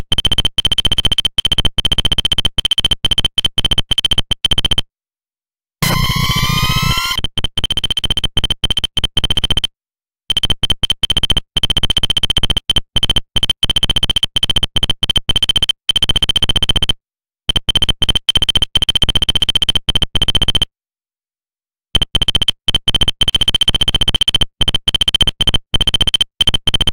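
Rapid electronic blips tick steadily in short bursts, like a game's text printing out.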